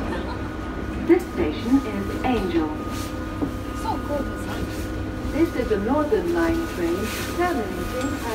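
A young woman talks casually nearby.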